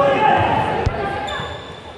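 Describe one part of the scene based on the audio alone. A ball thuds as a player kicks it.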